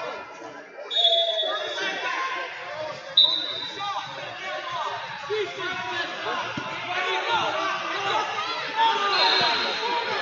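A whistle blows sharply.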